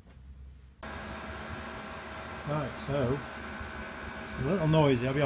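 A small heater runs with a steady humming whir.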